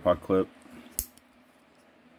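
A folding knife clicks sharply once.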